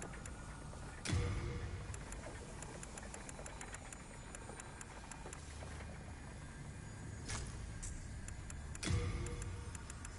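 A soft menu tick sounds repeatedly as a selection scrolls through a list.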